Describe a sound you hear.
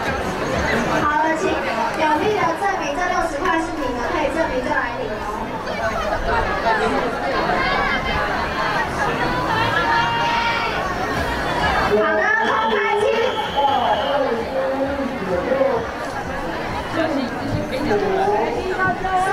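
A crowd of children chatter and call out all around, outdoors.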